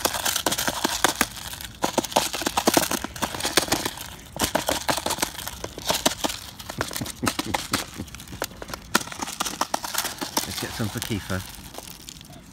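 A mute swan pecks and rattles its bill in a plastic tub of feed.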